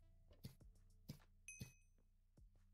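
Sword blows land in quick succession, with sharp hit sounds.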